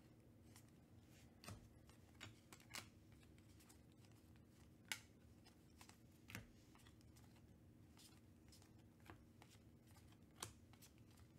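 Trading cards flick and slap softly as a stack is shuffled through by hand.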